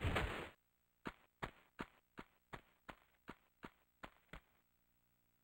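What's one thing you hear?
Footsteps patter quickly on stone.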